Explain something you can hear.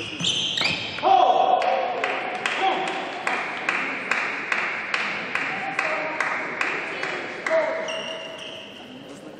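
A crowd claps in a steady rhythm in an echoing hall.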